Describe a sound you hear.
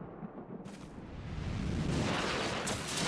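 A magical burst swells with a rushing whoosh.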